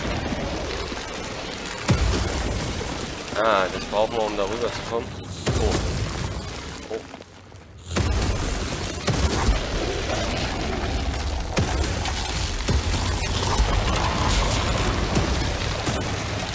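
Footsteps thud on stone as someone runs.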